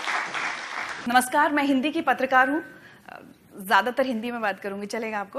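A young woman speaks calmly into a microphone in a large hall.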